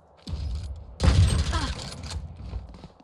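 A rifle bolt clacks as the weapon is reloaded.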